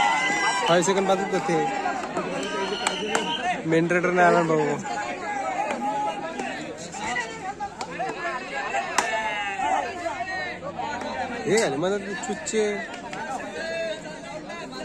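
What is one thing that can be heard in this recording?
A large crowd of young men shouts and cheers outdoors.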